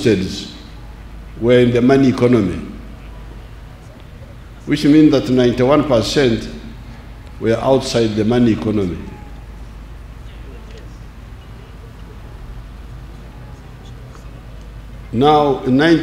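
An elderly man speaks slowly and deliberately through a microphone, with long pauses.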